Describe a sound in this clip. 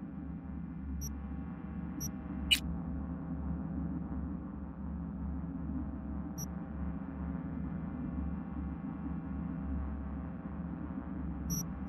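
Soft electronic interface clicks sound now and then.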